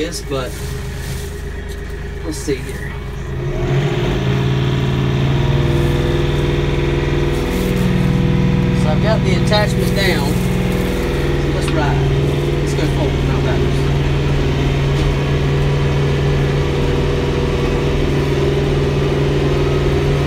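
A tractor engine idles, then revs up and runs with a steady drone.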